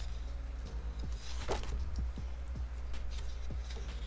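A page of paper is turned with a soft rustle.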